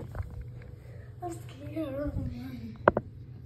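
A child speaks nearby.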